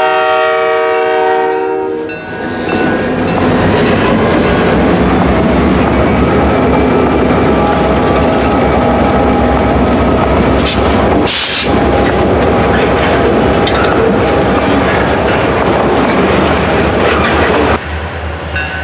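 Diesel locomotive engines roar close by as they pass.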